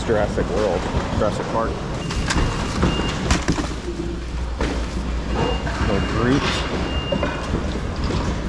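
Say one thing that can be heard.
Plastic bags rustle and crinkle as soft toys are shuffled about.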